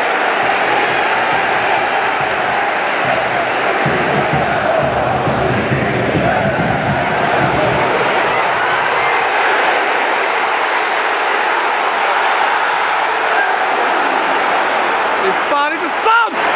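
A large stadium crowd roars and chants loudly throughout.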